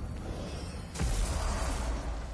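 A magical portal rumbles and roars.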